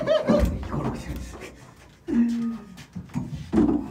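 A metal chair scrapes and clatters as it is moved.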